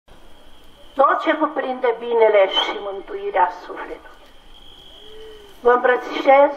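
A man chants into a microphone, heard through a loudspeaker.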